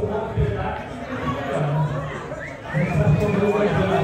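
Pool balls knock together.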